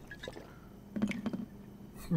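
A glass bottle is set down on a bar counter.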